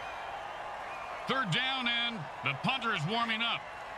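Players crash together in a tackle.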